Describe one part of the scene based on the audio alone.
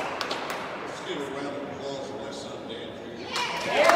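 An elderly man speaks calmly into a microphone in a large echoing hall.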